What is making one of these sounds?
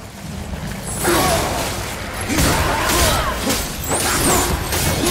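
Heavy blows and clashes land in a fierce fight.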